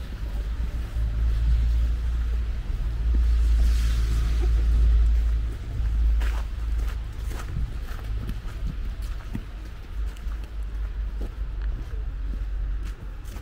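Footsteps crunch on a snowy pavement.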